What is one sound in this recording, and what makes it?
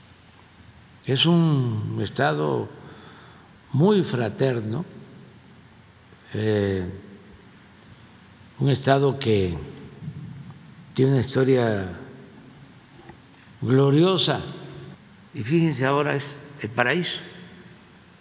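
An elderly man speaks slowly and deliberately into a microphone, with long pauses.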